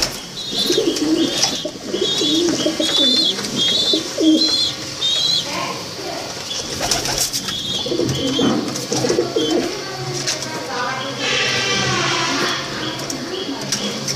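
Pigeon wings flap briefly.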